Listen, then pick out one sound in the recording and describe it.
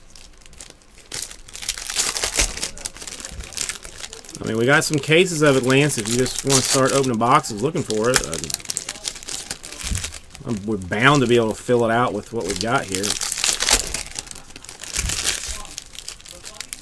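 Foil wrappers crinkle and rustle as they are torn open by hand.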